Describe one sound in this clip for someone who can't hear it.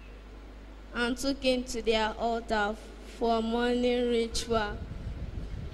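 A young boy sings loudly into a microphone, echoing through a loudspeaker.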